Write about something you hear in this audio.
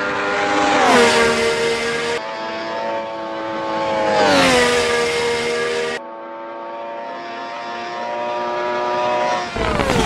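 A racing car engine roars at high revs and drops in pitch with each gear change.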